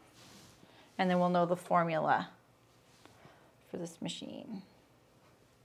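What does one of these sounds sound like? A woman speaks calmly into a nearby microphone.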